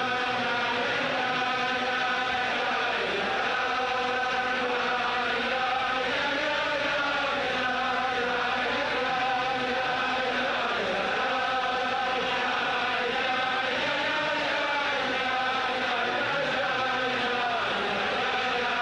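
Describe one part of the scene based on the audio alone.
A large crowd of men sings together in a big, echoing hall.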